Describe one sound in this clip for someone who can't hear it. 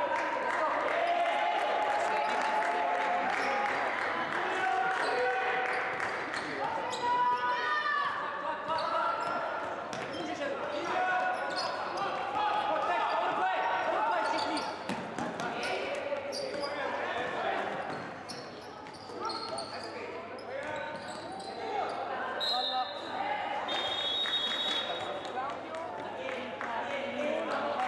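Sneakers squeak sharply on the court.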